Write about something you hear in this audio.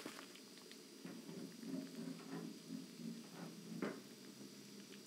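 A metal handwheel turns with a ratcheting clank.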